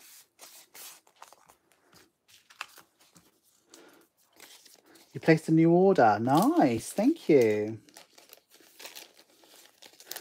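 Paper and plastic sticker sheets rustle and crinkle as they are handled.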